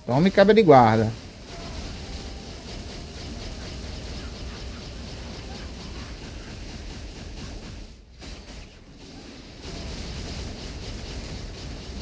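Fiery blasts and explosions crackle and rumble steadily.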